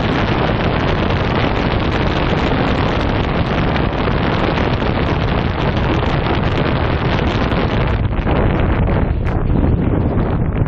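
Strong wind roars loudly and steadily across a microphone.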